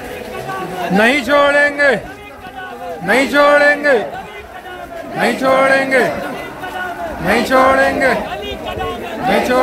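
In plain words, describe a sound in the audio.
A crowd of men chants slogans loudly in unison outdoors.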